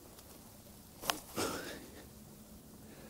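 Fingers brush and rustle dry grass up close.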